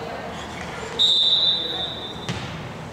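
A referee's whistle blows once, sharp and short.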